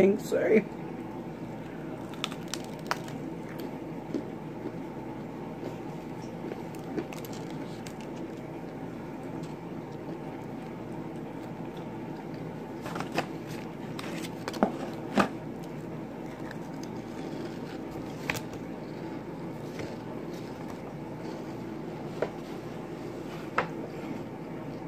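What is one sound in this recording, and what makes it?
A woman chews food with soft smacking sounds.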